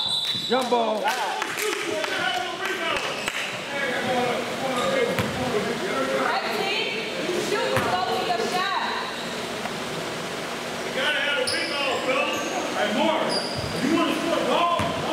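Young men shout and call out to each other, echoing in a large hall.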